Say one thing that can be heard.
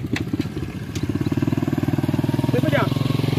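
A motorcycle engine putters closer.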